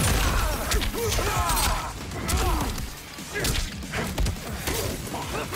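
Ice cracks and shatters.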